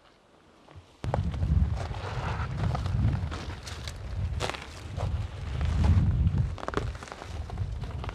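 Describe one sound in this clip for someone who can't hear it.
Footsteps crunch and rustle through dry undergrowth.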